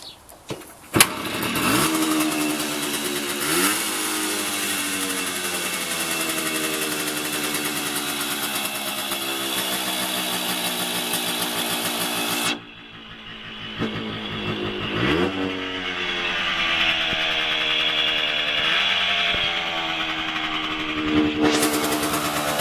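A small motorcycle engine idles with a steady, buzzing rattle.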